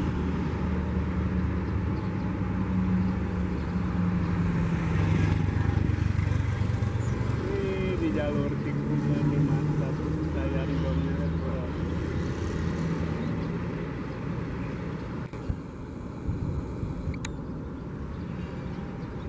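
A high-speed train hums and rumbles steadily as it approaches along the track.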